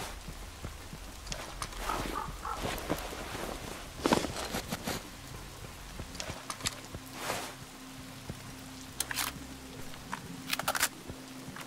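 A rifle rattles as it is handled.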